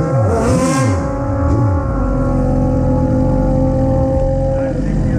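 A motorcycle engine idles with a loud, steady rumble.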